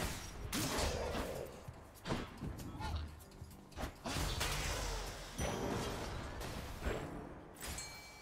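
Fighting sound effects whoosh and clatter in quick bursts.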